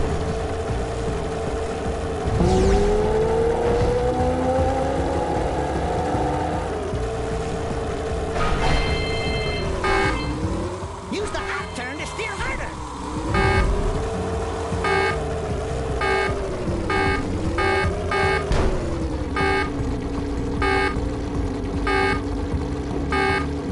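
A hover engine hums steadily, its pitch dipping and rising.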